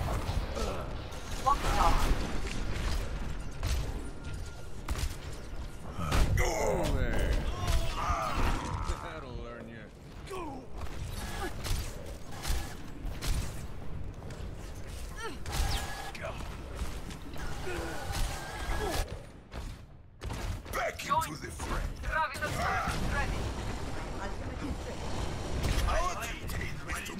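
Explosions and energy blasts boom.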